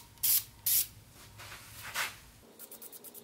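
An aerosol can sprays in short hissing bursts.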